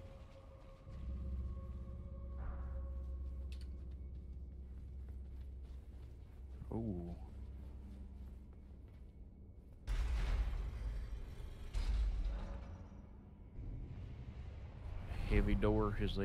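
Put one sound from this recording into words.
A low rumbling drone fills an echoing space.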